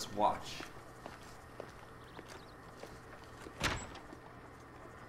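Footsteps climb stone steps.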